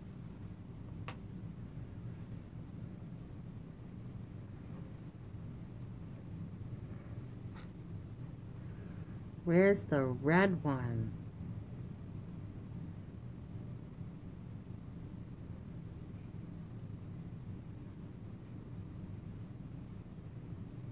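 A wooden clothespin clicks as it is squeezed.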